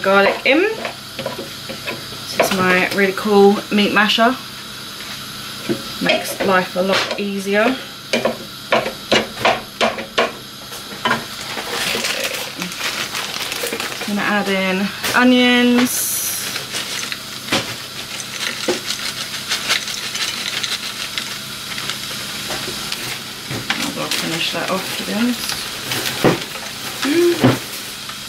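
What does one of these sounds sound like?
Meat sizzles gently in a hot pan.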